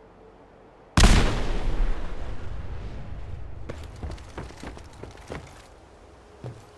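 A grenade explodes with a long rumbling echo.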